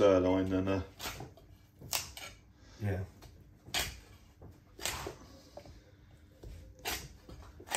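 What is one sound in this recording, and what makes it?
A cleaver chops through meat and bone with sharp thuds.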